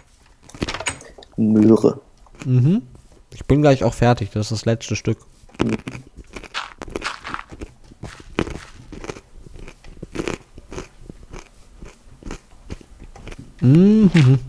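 Dirt crunches in short repeated bursts as blocks are dug and placed.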